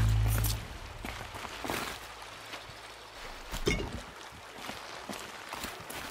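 Footsteps thud quickly across rocky ground.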